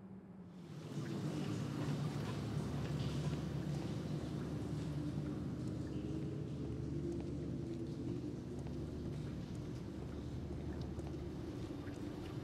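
Footsteps tread on a hard stone floor.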